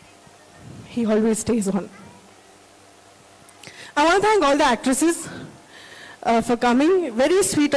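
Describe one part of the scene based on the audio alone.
A woman speaks with feeling into a microphone, heard through loudspeakers.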